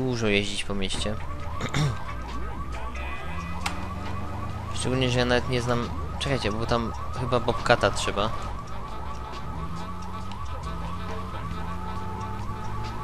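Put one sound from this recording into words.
Music plays from a car radio.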